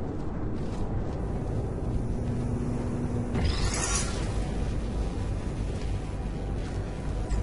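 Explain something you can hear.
A low electric hum drones steadily.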